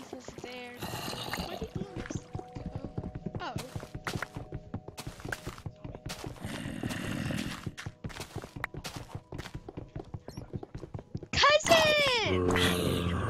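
Footsteps crunch steadily on stone and gravel.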